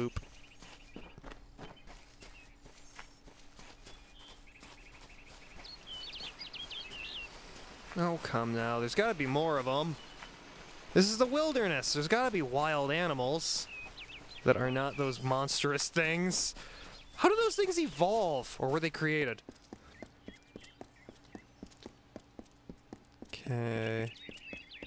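A character's footsteps patter quickly on grass and stone.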